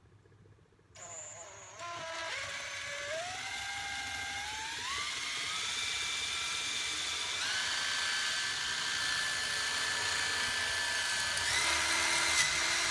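A cordless drill whirs steadily, its pitch rising in steps as it speeds up.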